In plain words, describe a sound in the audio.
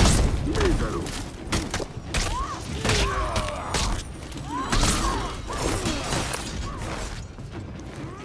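Steel weapons clash and clang in a fight.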